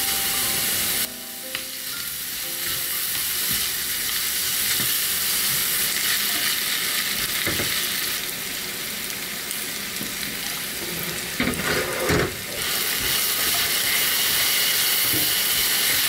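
Food sizzles in a frying pan.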